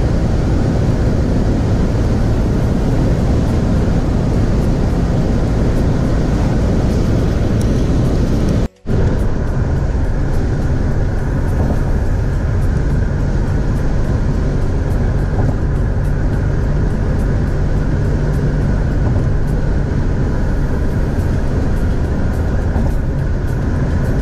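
A car drives steadily with a low, constant road rumble.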